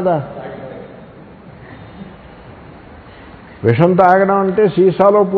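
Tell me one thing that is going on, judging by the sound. An elderly man chants in a drawn-out, singing voice through a microphone.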